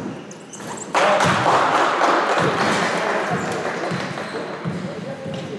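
Spectators cheer and clap loudly in an echoing gym.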